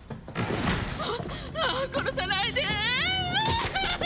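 A young woman wails loudly in distress.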